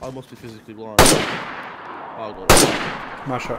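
A rifle fires two loud shots that echo and fade across open ground.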